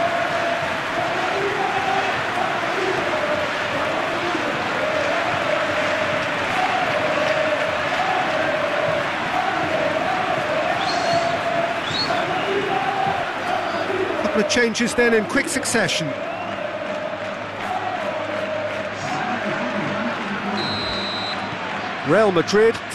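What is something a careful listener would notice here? A large stadium crowd chants and roars.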